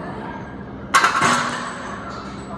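A barbell clanks as it is set onto its rack.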